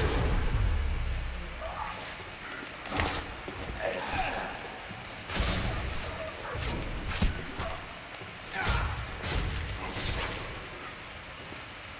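Heavy blows strike flesh in a game, with wet thuds.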